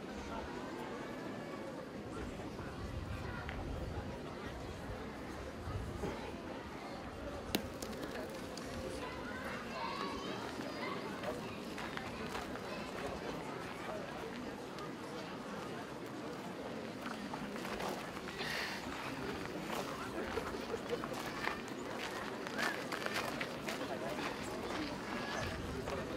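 A large crowd of men and women murmurs and chatters outdoors.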